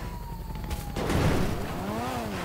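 A car lands on the ground with a heavy thud.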